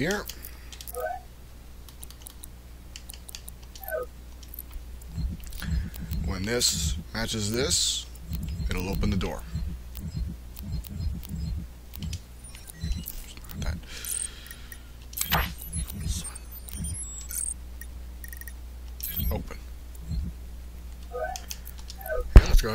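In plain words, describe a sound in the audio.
Short electronic interface blips sound as menu items are selected.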